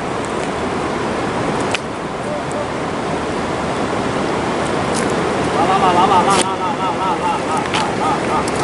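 A river rushes and gurgles steadily outdoors.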